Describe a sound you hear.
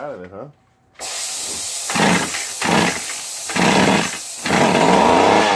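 A small chainsaw engine sputters and catches briefly.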